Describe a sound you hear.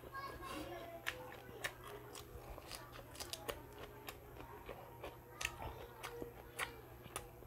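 A man chews crunchy lettuce loudly and close up.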